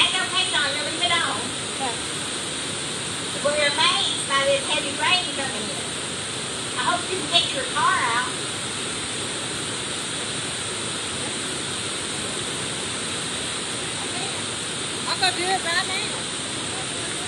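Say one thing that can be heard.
A woman speaks calmly through a microphone in a large echoing hall, pausing often.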